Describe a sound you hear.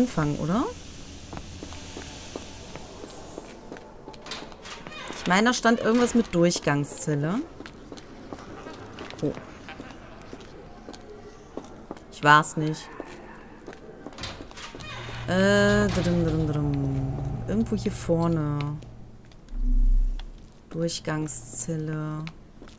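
Footsteps hurry over a stone floor.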